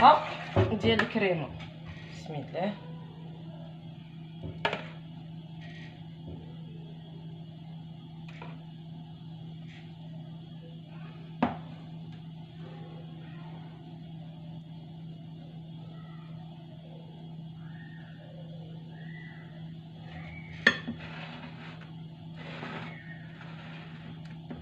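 A spoon scrapes and clinks against a glass dish.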